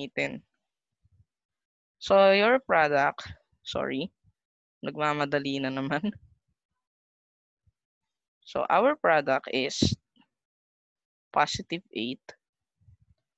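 A man speaks calmly and clearly into a microphone, explaining in short phrases with pauses.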